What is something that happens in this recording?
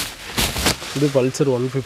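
A man speaks calmly into a clip-on microphone.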